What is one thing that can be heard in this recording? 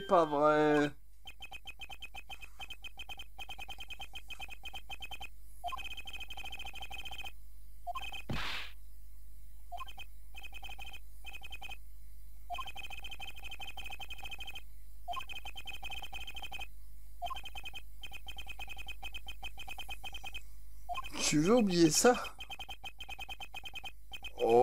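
Rapid high electronic blips tick in short bursts.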